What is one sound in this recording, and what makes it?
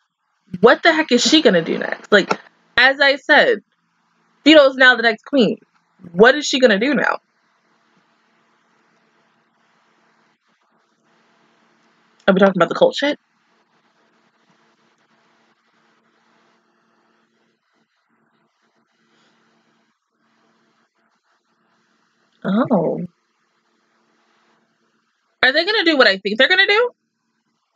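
A young woman talks close to a microphone in short bursts, with pauses of silence.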